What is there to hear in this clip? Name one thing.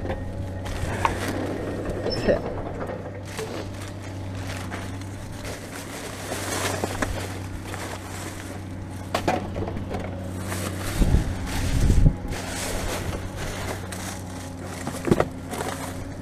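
Plastic bags and cardboard rustle and crinkle as trash shifts.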